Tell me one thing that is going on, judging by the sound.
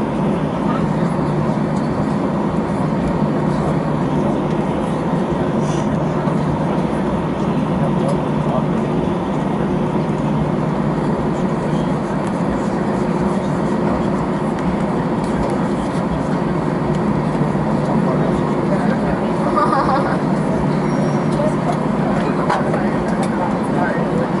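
A jet engine drones steadily, heard from inside an airliner cabin.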